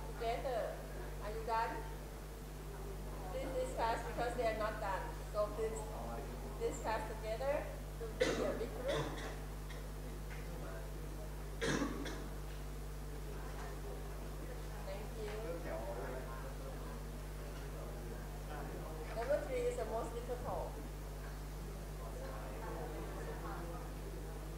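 Young men and women talk among themselves in a group.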